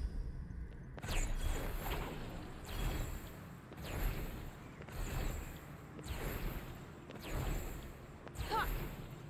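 Magic sparks whoosh and crackle in repeated bursts.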